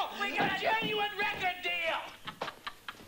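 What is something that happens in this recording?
A man shouts excitedly close by.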